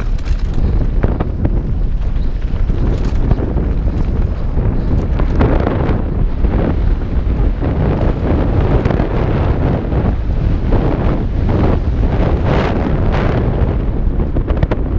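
Wind rushes loudly past the rider's helmet.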